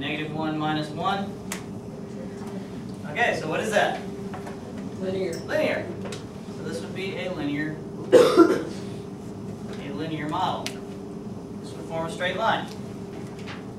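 A man speaks calmly in a room with some echo.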